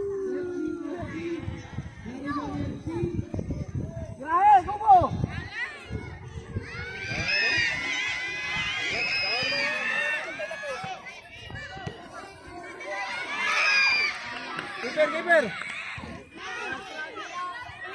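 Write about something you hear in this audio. Children shout and cheer outdoors with high, excited voices.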